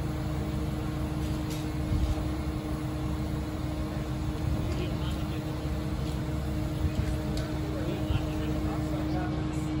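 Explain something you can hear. A fire truck engine idles with a steady low rumble.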